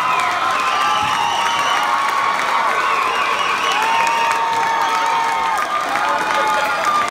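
Electric guitars play loudly through amplifiers in a large hall.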